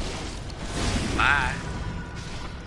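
A creature shrieks in pain.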